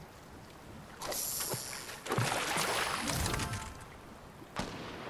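A fishing line is cast and splashes into water.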